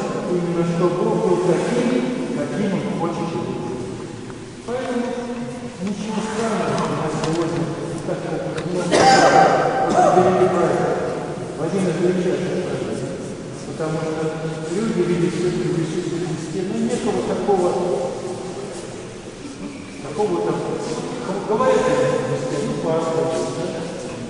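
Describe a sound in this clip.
A crowd of men and women sings a slow chant together, echoing in a large hall.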